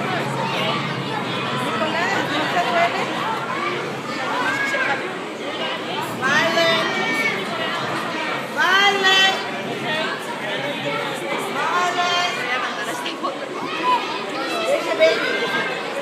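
A crowd of adults and children murmurs all around.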